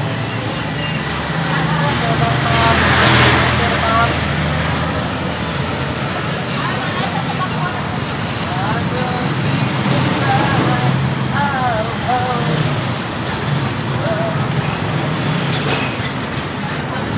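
Motorbikes and other vehicles pass by on a nearby street.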